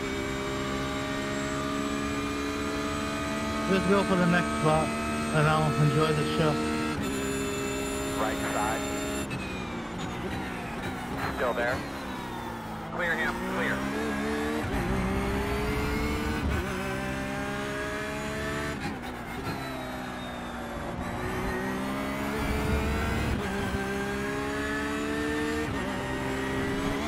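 A racing car engine roars loudly, its pitch rising through the gears and dropping as it slows for corners.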